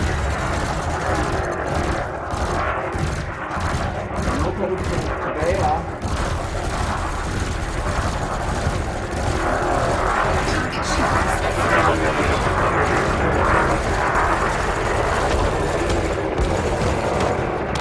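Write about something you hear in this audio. Laser fire zaps and crackles repeatedly.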